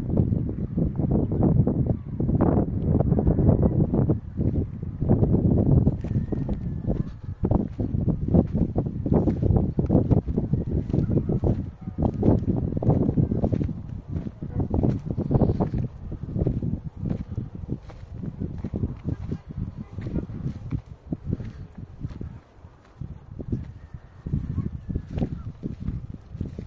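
Footsteps crunch on grass and stony ground close by.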